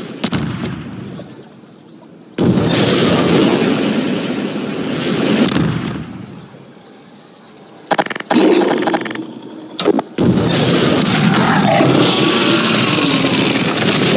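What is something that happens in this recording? A rocket launcher fires with a whoosh.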